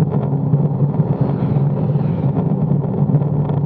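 A motorcycle passes by in the other direction.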